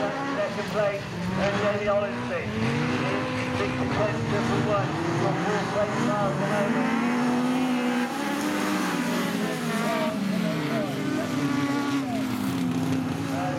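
Several racing car engines roar and rev.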